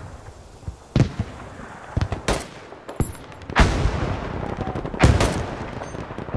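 Explosions boom in the distance, one after another.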